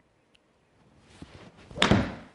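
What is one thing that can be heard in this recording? A golf club swishes through the air.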